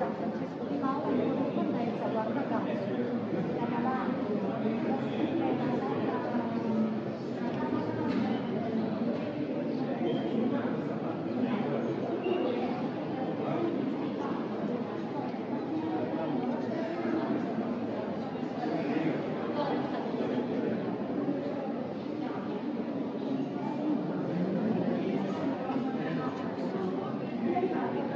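A crowd of people murmurs and chatters throughout a large echoing hall.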